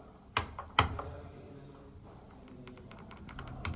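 A finger clicks a lift button.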